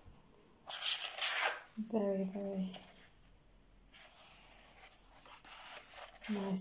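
Paper pages rustle as they are turned by hand.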